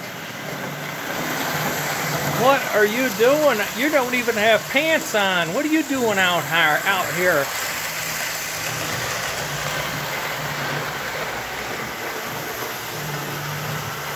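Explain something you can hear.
A toy electric train hums and rattles along its track.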